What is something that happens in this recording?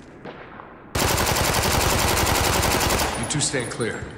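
A submachine gun fires a rapid, loud burst.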